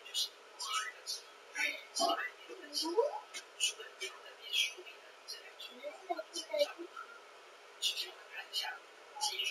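Young children talk and babble nearby.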